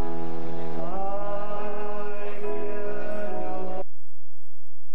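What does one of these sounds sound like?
A woman sings through a loudspeaker.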